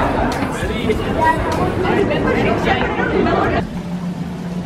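A busy crowd murmurs in an echoing hall.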